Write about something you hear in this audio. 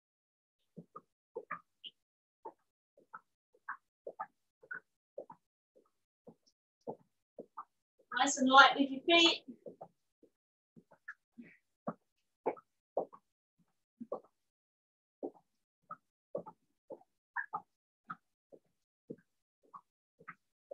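Feet tap softly and quickly on an exercise mat.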